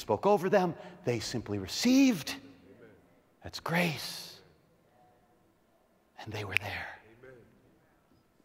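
A middle-aged man speaks with animation into a microphone in a large hall.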